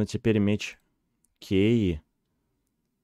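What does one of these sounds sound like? A young man speaks animatedly into a close microphone.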